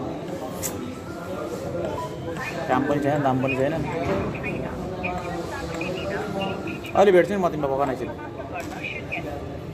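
A spoon clinks against a cup.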